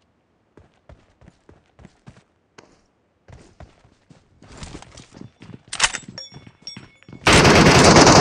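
Footsteps thud quickly over ground and floor.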